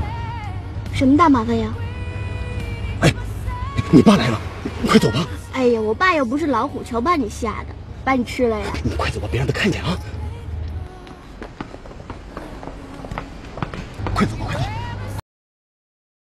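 A young man and a young woman talk quickly and playfully close by.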